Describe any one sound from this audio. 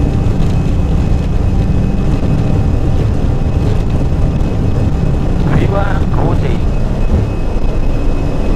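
A jet engine roars steadily as an airliner rolls down a runway.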